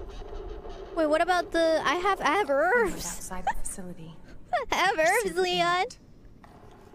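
A young woman speaks excitedly and loudly into a microphone.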